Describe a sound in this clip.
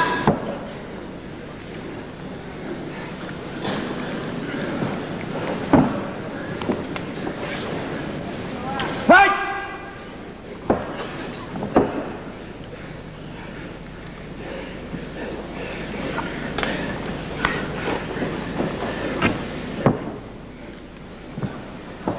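A large crowd murmurs and shouts in a big echoing arena.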